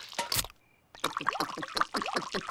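A cartoon bird gulps down a drink noisily.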